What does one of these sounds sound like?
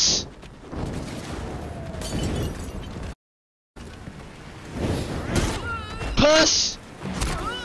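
Fists thud in quick blows during a fight.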